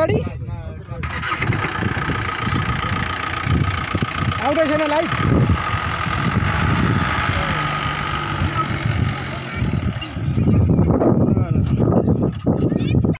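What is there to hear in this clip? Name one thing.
A diesel pickup engine labours under load on a dirt track.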